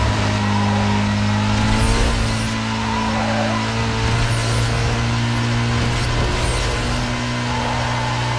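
A racing car engine roars at high revs and shifts gears.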